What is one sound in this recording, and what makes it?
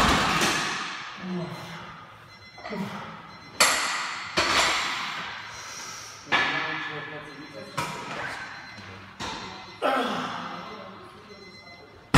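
Heavy weight plates clang down onto the floor again and again, ringing out in an echoing room.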